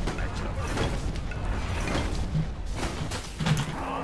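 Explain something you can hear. Magical strikes crackle and zap in quick bursts.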